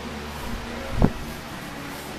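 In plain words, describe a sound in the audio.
Weight plates knock together with a dull thud.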